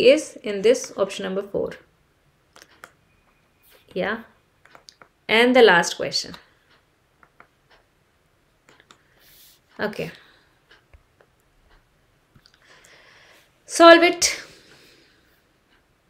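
A young woman speaks calmly and clearly into a close microphone, with pauses.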